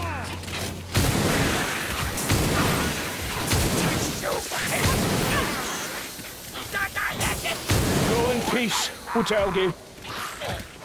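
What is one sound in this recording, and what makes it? Pistols fire loud, sharp shots in quick bursts.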